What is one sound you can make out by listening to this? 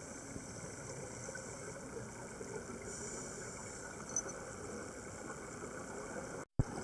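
A steady, muffled underwater hiss and rumble of water surrounds the listener.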